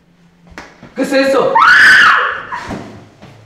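A young person screams loudly nearby.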